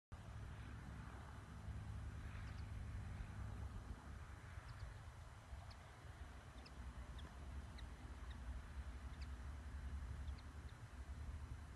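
A small propeller plane drones in the distance.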